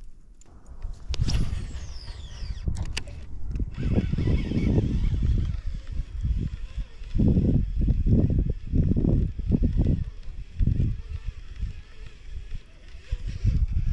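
A fishing reel whirs as it is wound.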